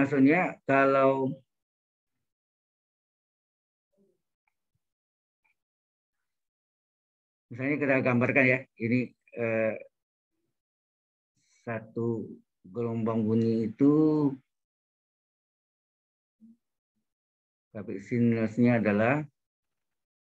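A man speaks calmly through an online call, in short phrases with long pauses.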